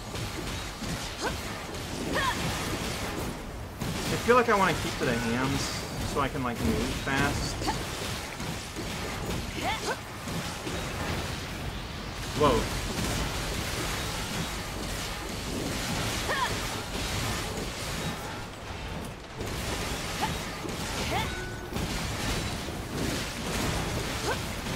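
A giant machine's metal limbs grind and stomp heavily.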